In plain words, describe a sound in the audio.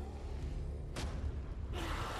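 A creature growls and snarls loudly.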